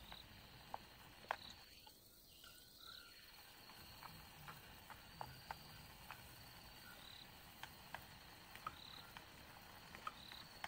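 Chopsticks click and scrape against a plastic tray of noodles.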